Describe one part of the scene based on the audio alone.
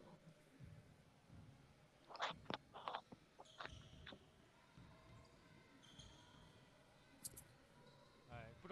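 A basketball bounces on a hard court in quick dribbles.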